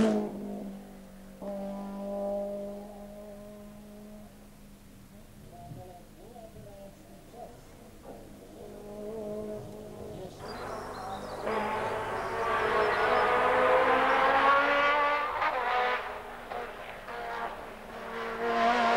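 A racing car engine roars at high revs, rising and dropping with gear changes as the car speeds by.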